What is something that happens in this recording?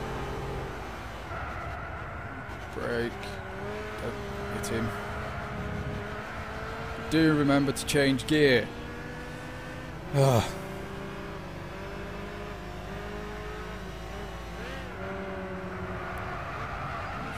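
A racing car engine drones steadily, its pitch rising and falling with the gear changes.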